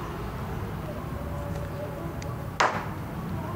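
Wind blows softly through leafy trees outdoors.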